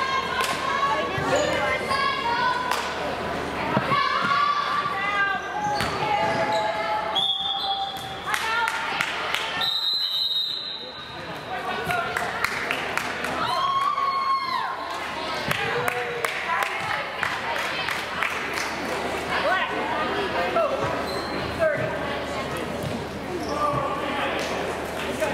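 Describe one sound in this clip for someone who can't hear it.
A crowd of spectators chatters and calls out in an echoing gym.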